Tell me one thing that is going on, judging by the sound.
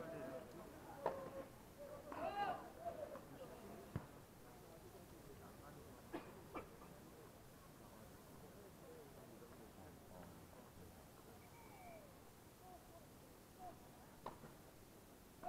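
A tennis ball is struck with sharp pops.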